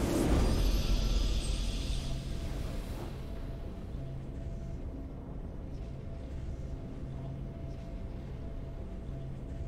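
Soft, low game music pulses steadily.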